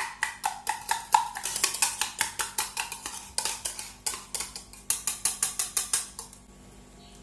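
A whisk rattles quickly against a metal cup.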